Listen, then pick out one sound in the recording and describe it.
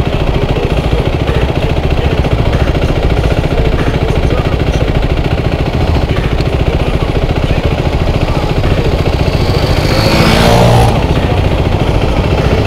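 A motorcycle engine idles with a steady, throbbing rumble close by.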